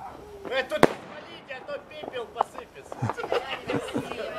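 Fireworks crackle and fizz after bursting.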